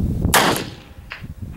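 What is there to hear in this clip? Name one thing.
A revolver fires a single loud shot outdoors.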